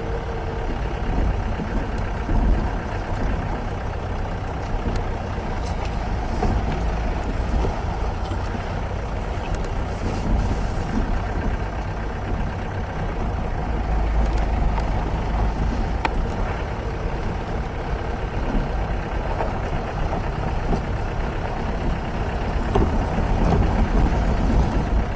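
Tyres crunch and rattle over a bumpy dirt road.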